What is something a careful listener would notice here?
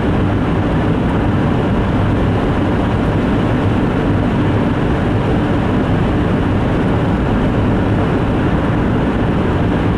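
Tyres hum steadily on a wet road from inside a moving car.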